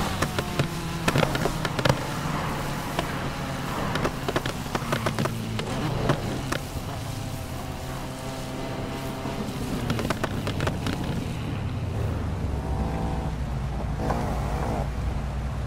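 A car engine revs hard and shifts gears.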